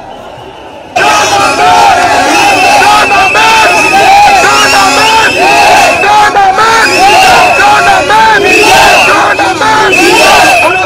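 Young men chant loudly and in unison close by.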